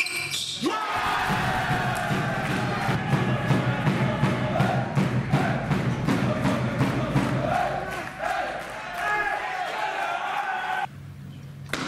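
A crowd in a large echoing hall cheers and applauds.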